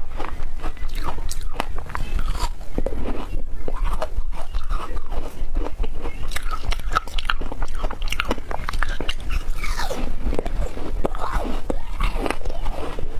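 A young woman bites and crunches flavored ice close to a microphone.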